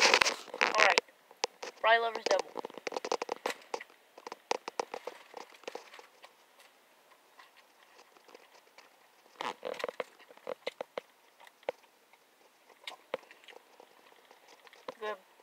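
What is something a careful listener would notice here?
A young woman chews food noisily close by.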